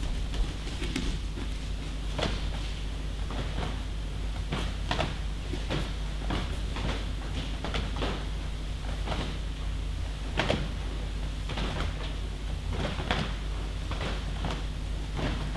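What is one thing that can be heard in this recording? Bare feet shuffle and thump on mats in a large echoing hall.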